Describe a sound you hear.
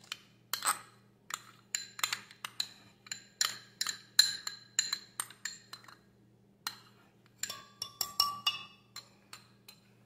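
A metal spoon clinks and taps against a glass jug.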